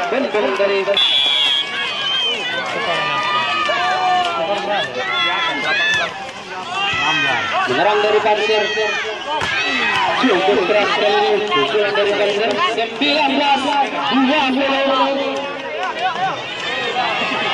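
A large outdoor crowd of spectators shouts and cheers.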